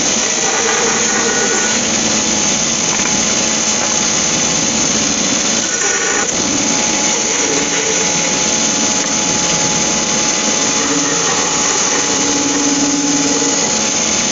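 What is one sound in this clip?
A band saw blade cuts through a piece of wood.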